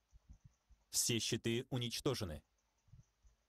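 A young man speaks through a headset microphone.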